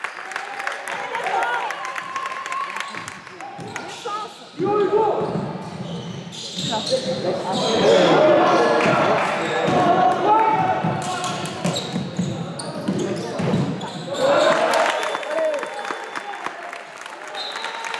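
A ball bounces on a hard floor in an echoing hall.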